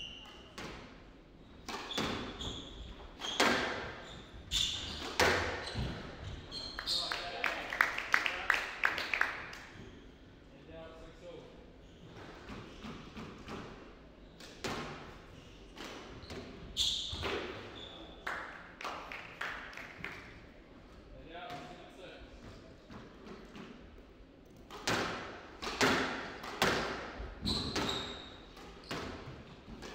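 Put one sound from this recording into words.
A squash ball smacks hard against the walls, echoing in a large hall.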